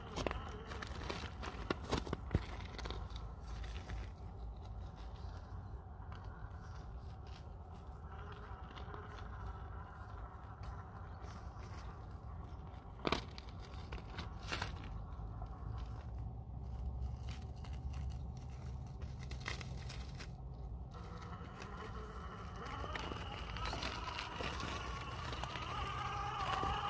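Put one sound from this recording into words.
A small electric motor whines as a toy truck climbs over rock.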